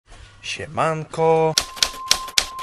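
A young man speaks briefly and close by.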